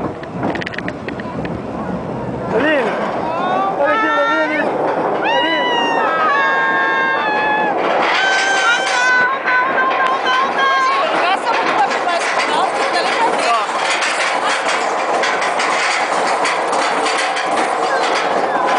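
A roller coaster car rattles and clanks along its track.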